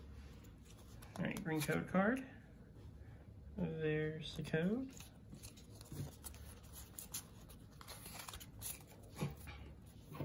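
Cards rustle and slide against each other.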